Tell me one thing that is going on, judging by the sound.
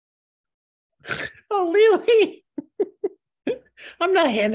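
A middle-aged woman speaks cheerfully over an online call.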